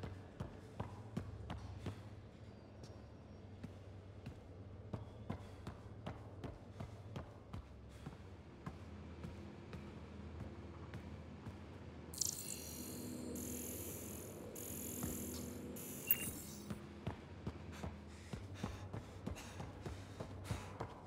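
Footsteps tap steadily on a hard metal floor.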